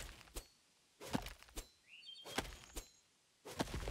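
Sharp chopping knocks sound in a game.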